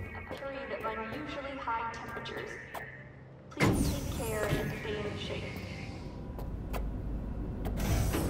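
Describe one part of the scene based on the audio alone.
An elevator hums as it moves.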